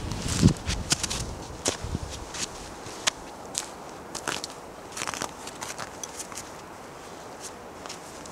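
Footsteps crunch on snow close by.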